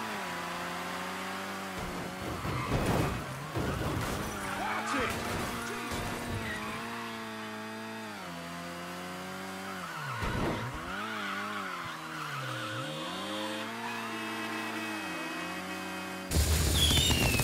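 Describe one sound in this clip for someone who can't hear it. A van's engine roars and revs up and down as it races.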